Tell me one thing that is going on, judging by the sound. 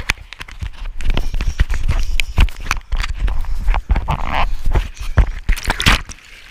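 Fingers rub and knock against a microphone up close.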